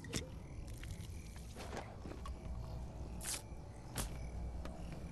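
A pickaxe strikes a tree trunk with sharp thuds.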